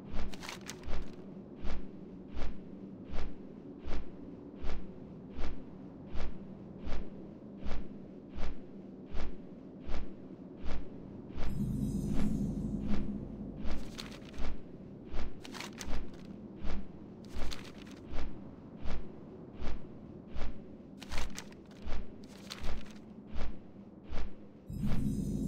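Large wings flap in a steady, even rhythm.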